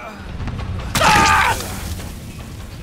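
A heavy hammer strikes a body with a loud thud.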